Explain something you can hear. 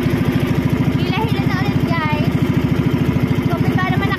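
A young woman speaks briefly close by, over the engine.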